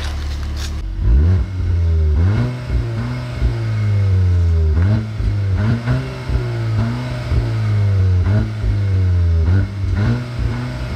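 A car engine revs hard again and again at a standstill, the exhaust roaring.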